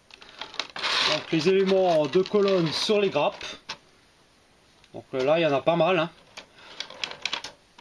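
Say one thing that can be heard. A thin plastic blister tray crinkles as it is handled.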